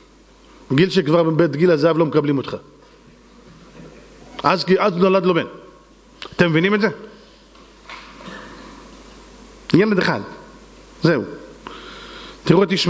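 A middle-aged man sings into a microphone in short, drawn-out phrases.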